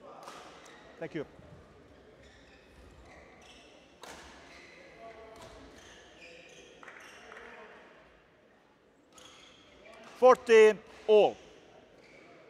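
Sports shoes squeak sharply on a court floor.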